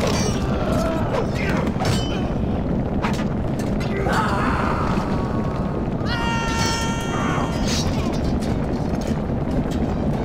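Swords clash and clang in a dense battle din.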